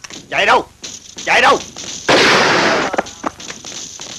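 A man shouts angrily nearby.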